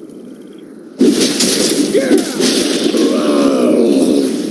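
Game spells and weapon hits clash loudly in a busy battle.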